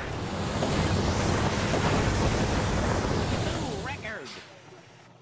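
A truck engine roars loudly.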